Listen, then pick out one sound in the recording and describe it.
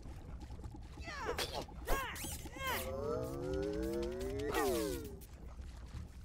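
Electronic warbling tones rise and fall in pitch.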